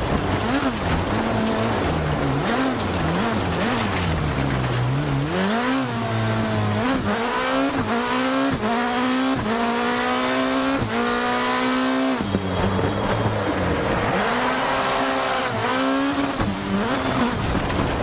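Tyres hiss on a wet track.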